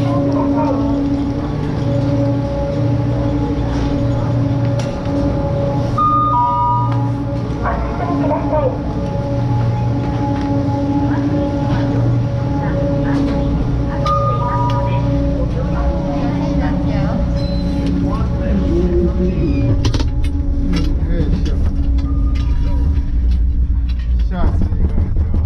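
Chairlift machinery hums and rumbles steadily.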